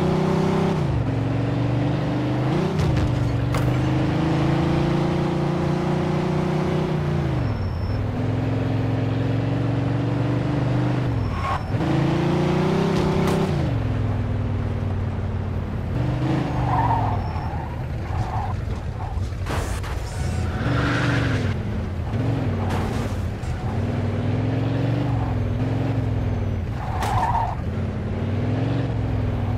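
A car engine roars and revs up and down as it shifts gears.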